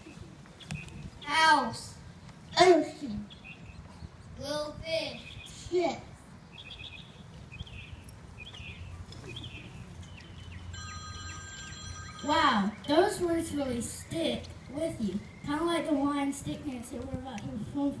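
A young boy sings through a microphone.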